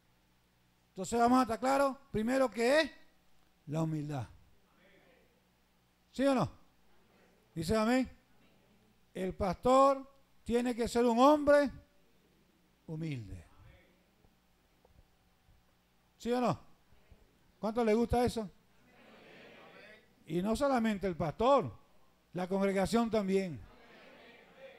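A man preaches with animation into a microphone, in bursts with pauses, heard through loudspeakers in a room.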